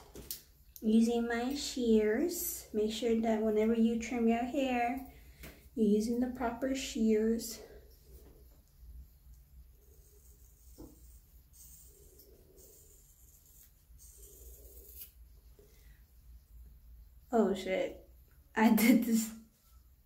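Hands rustle through thick hair.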